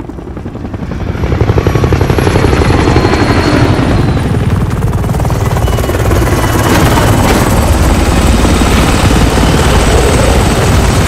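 A helicopter's rotor thuds loudly and steadily overhead.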